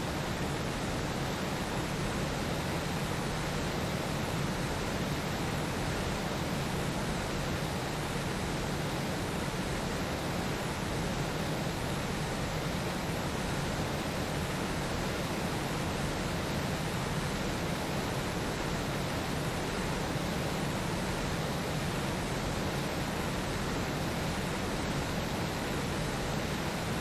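Wind rushes past at speed.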